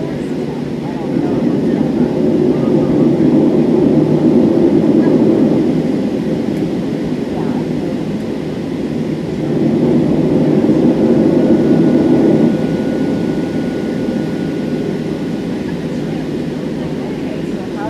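A jet engine roars steadily inside an aircraft cabin, swelling and easing as the plane taxis.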